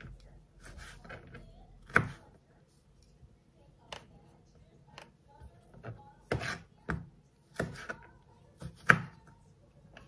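A knife cuts through an orange onto a plastic cutting board.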